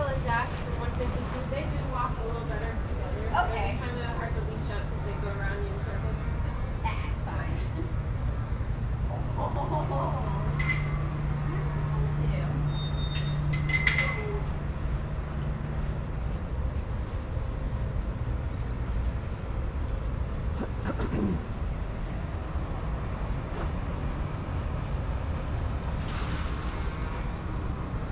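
Dogs' paws pad softly on sand.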